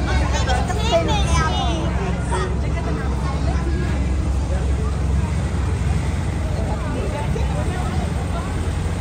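Voices of a crowd chatter in a street outdoors.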